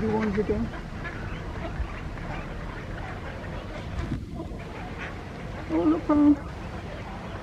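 Ducks quack on open water.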